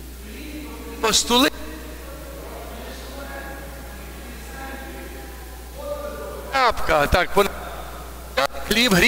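A congregation sings a short response in unison.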